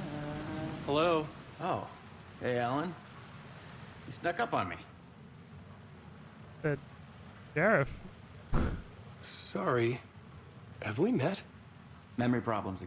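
A man speaks in a friendly, casual tone.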